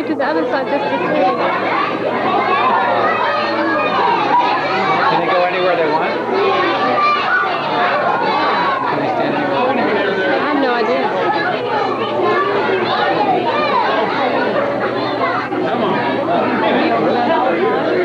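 Many young children chatter and call out loudly all around, in a large echoing hall.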